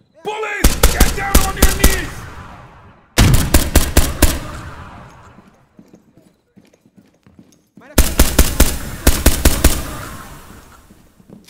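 Rapid bursts of gunfire ring out and echo.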